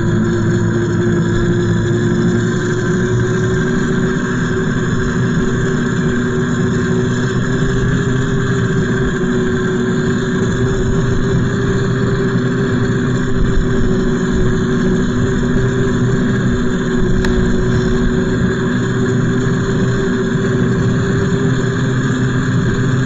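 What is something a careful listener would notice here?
A small tractor engine drones steadily up close as it drives along.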